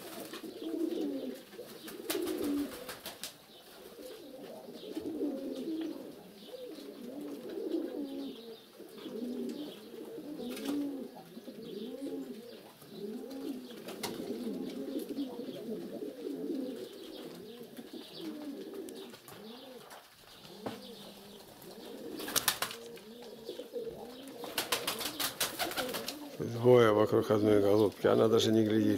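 Pigeons coo softly in repeated low, rolling calls.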